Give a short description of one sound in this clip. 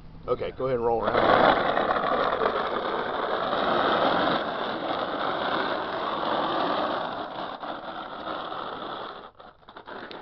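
A man's body scrapes along concrete as he slides on his back.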